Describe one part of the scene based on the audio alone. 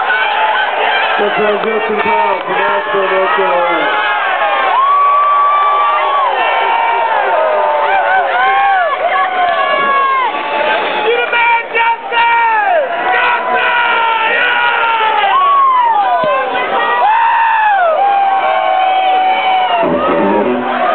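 An electric guitar plays a wailing, bending lead line.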